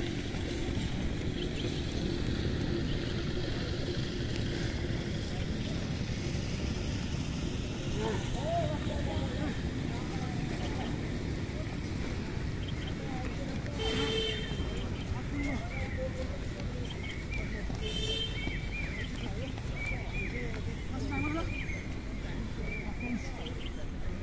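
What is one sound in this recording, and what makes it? Runners' feet thud softly on grass.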